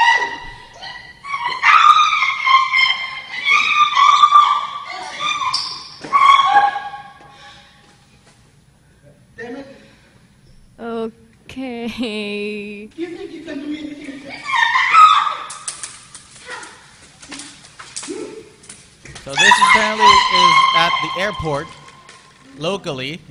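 A woman screams and shouts shrilly in a large echoing hall.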